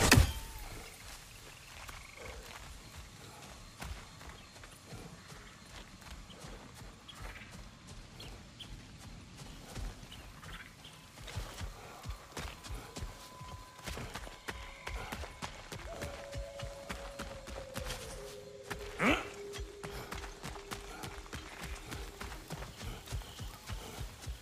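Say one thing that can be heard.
Footsteps crunch on leaves and earth.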